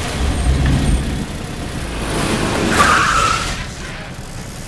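A truck engine rumbles nearby.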